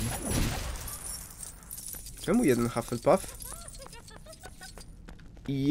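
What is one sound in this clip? Small coins clink and jingle as they are picked up.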